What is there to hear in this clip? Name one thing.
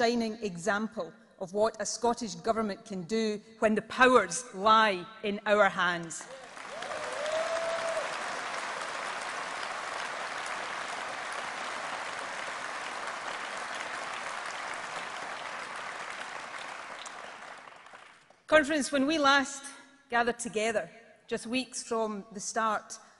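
A middle-aged woman speaks firmly into a microphone in a large echoing hall.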